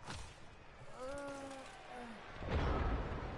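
A chime sounds as a new turn begins.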